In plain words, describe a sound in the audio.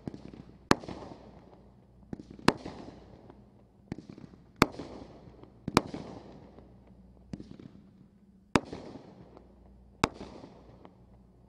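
Crackling stars sizzle and pop after each burst.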